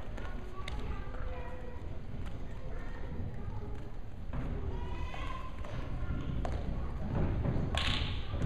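Men call out and shout instructions in a large echoing hall.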